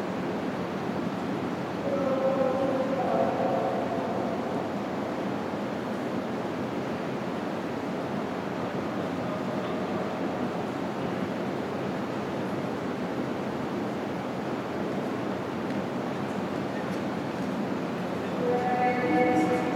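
A large echoing hall hums with a steady low noise.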